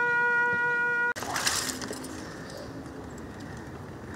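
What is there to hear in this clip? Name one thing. Rifles snap into position with sharp clicks.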